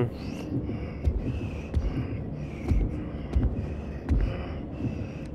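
Heavy footsteps thud slowly on a hard floor.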